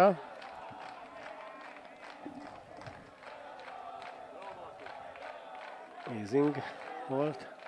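A crowd of spectators murmurs and chatters outdoors.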